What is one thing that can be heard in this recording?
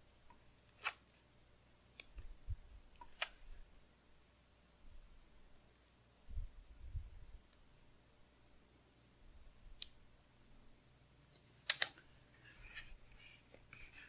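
Stickers peel off their backing with soft crackles.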